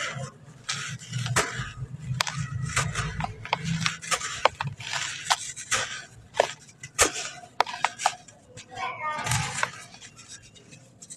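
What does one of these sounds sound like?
Dry clay crumbles and crunches as hands squeeze it, close up.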